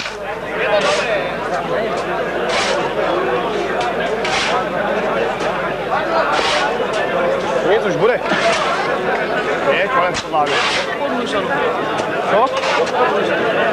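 A shovel scrapes and digs into soil.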